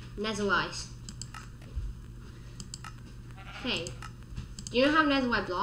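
A game menu clicks softly as pages change.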